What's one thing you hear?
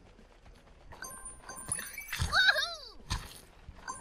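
A bright game chime rings twice in quick succession.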